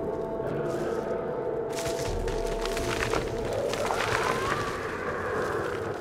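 Footsteps crunch over loose rubble.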